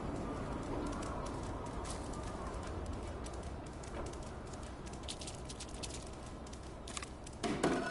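Soft footsteps patter on a hard floor.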